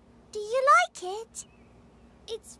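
A child's cartoon voice asks a question brightly.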